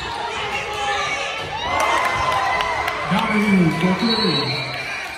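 Spectators cheer and shout in an echoing gym.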